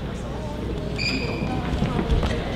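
A whistle blows briefly in a large echoing hall.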